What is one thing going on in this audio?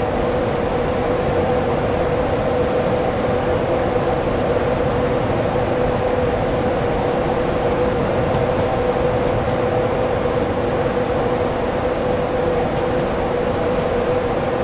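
An electric locomotive hums steadily as it passes at speed.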